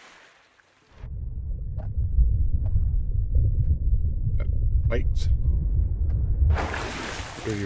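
Water rumbles and gurgles, heard muffled from underwater.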